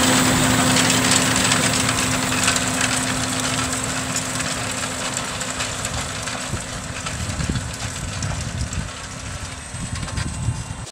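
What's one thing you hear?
A tractor engine drones steadily and slowly fades as it moves away.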